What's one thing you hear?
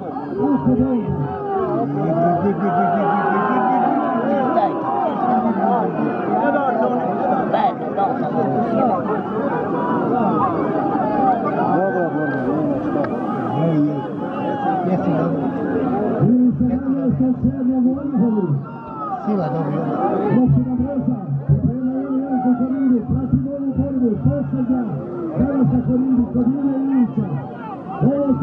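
A large crowd of men and women talks and shouts outdoors.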